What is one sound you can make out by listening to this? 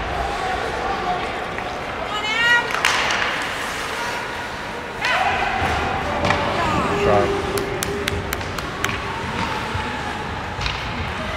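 A crowd of spectators cheers and chatters in a large echoing arena.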